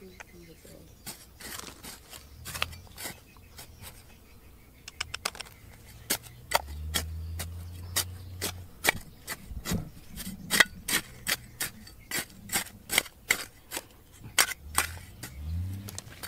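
A metal trowel scrapes and digs into dry, stony soil.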